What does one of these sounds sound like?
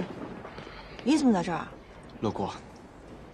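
A young man answers calmly.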